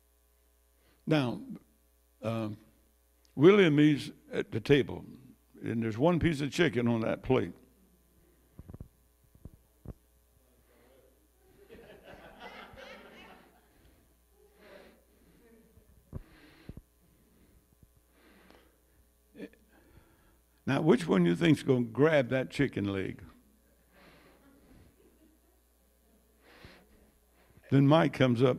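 An elderly man speaks into a microphone over loudspeakers, with pauses, in a room with some echo.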